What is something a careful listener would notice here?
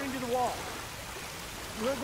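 A stream of water pours down and splashes.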